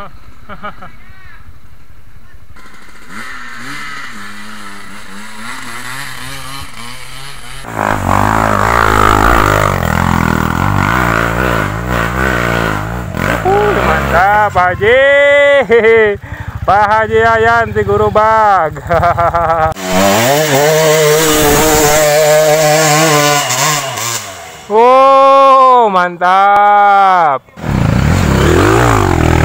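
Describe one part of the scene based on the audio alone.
Dirt bike engines rev hard, rising and falling in pitch.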